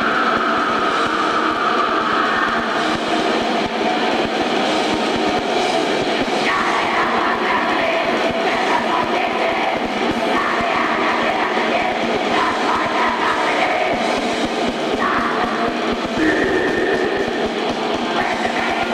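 Drums pound fast and hard.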